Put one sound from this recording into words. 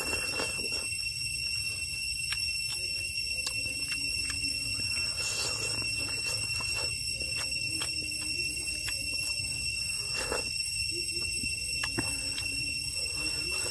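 A man chews food close to a microphone with wet, smacking mouth sounds.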